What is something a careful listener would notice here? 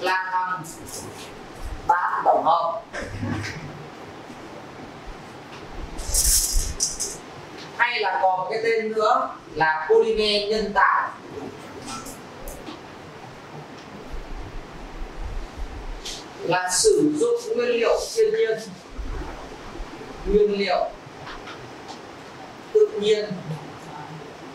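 A man lectures in bursts in a room with a slight echo.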